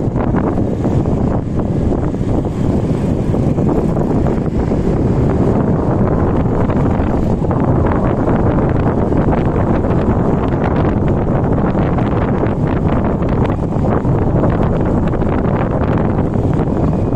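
Motorcycles and cars drive along nearby.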